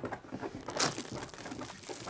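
Hands tap and knock on a glass pane.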